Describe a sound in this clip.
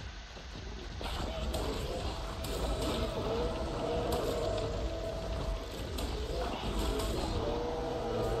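Creatures snarl and thud in a fight.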